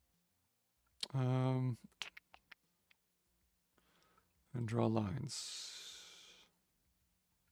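A man speaks briefly and casually into a nearby microphone.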